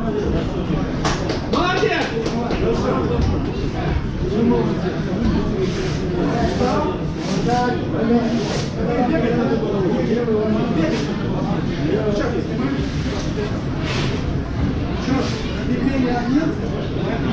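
A crowd of spectators talks and calls out in an echoing hall.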